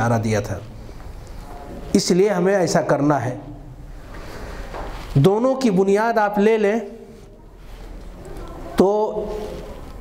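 An elderly man speaks with animation into a microphone, in bursts with pauses.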